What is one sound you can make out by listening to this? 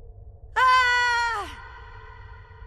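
A monstrous creature lets out a loud, falling scream.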